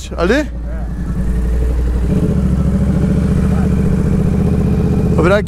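A motorcycle engine revs sharply in quick bursts.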